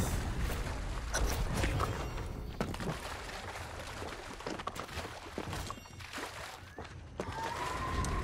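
Water splashes as a figure wades through shallow surf.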